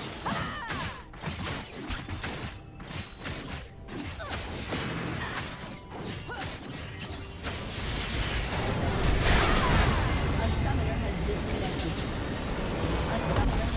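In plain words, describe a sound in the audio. Spell effects and weapon hits clash in a fast game battle.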